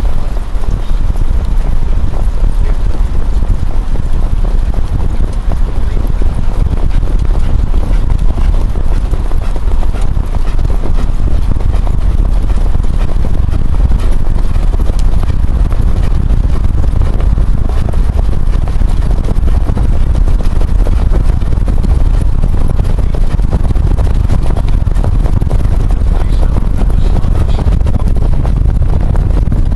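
Hooves pound the track as trotting horses pull carts past at speed.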